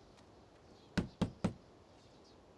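Knuckles knock on a wooden door.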